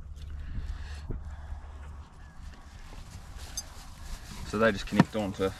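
Dry grass rustles as a man handles things on the ground.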